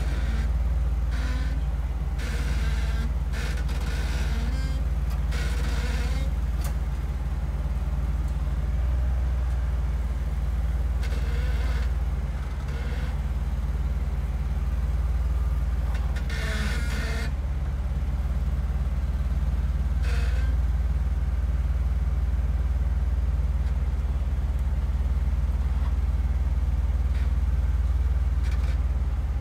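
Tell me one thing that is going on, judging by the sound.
An engine rumbles low and steady as an off-road vehicle crawls over rocks.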